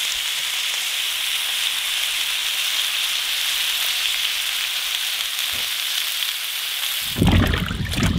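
Tomatoes sizzle steadily in hot pans.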